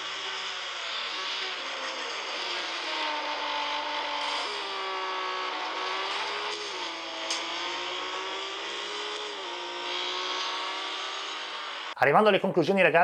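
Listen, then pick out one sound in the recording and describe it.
A racing car engine whines and revs from a small phone speaker.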